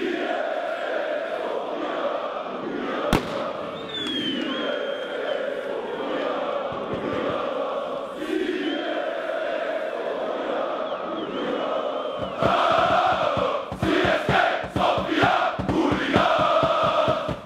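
A large stadium crowd chants loudly in unison.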